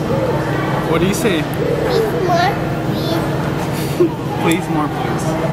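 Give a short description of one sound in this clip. A young man talks playfully to a small child close by.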